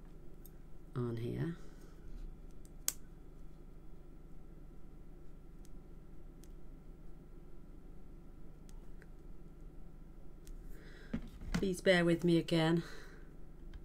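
A middle-aged woman speaks briefly and calmly, close to a microphone.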